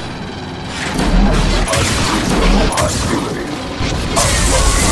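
Gunfire bursts out in rapid, loud shots.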